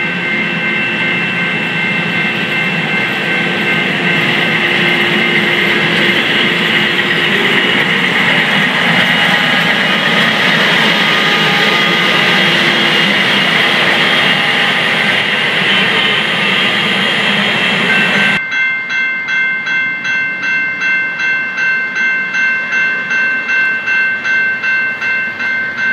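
A railway crossing bell dings rapidly and steadily.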